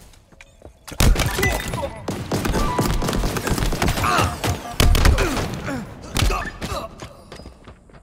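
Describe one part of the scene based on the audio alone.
Rapid gunshots ring out in a loud fight.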